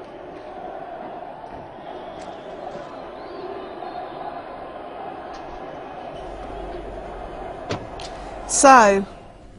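A large crowd chants and cheers outdoors.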